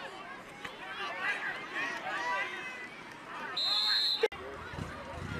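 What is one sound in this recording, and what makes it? A crowd cheers and shouts in the stands.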